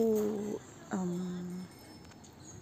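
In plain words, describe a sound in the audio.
A young child squeals happily nearby.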